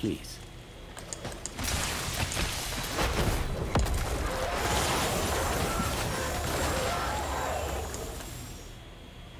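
Magic spell blasts and impacts crackle in a video game battle.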